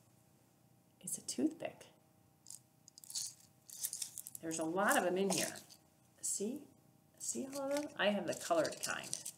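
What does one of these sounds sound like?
A woman talks calmly close to a microphone.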